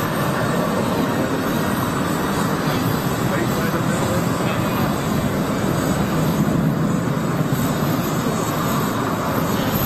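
A jet plane's engines roar steadily as the plane taxis close by.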